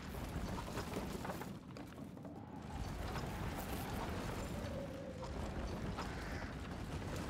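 A heavy wooden cart scrapes and rumbles across creaking floorboards.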